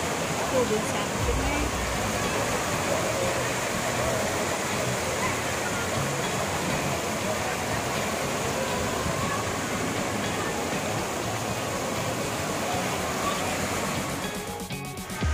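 Waves rush and splash through a pool.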